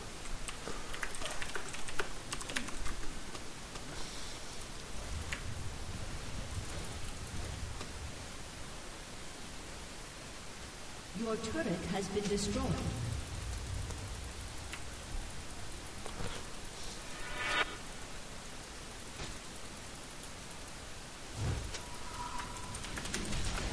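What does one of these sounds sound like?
A magic beam zaps and crackles in short bursts.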